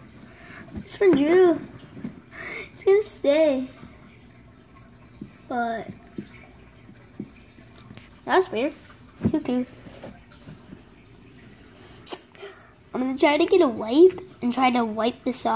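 A young boy talks close by, with animation, in short bursts.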